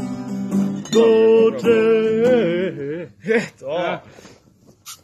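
Young men sing loudly outdoors.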